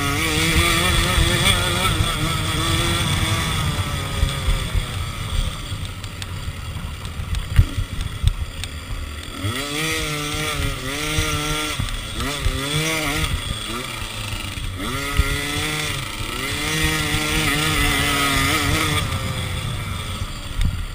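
A dirt bike engine revs hard and close, rising and falling in pitch.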